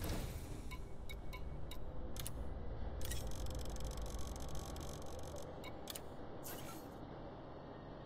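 Short electronic menu clicks and beeps sound in quick bursts.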